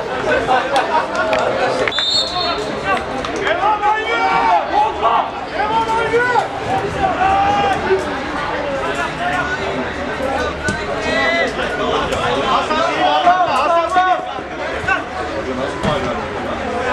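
Men shout and call out across an open playing field.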